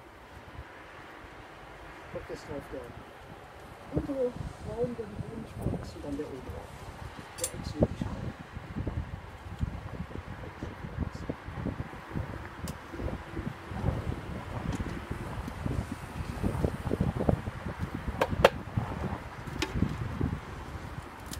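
Bees buzz around a hive.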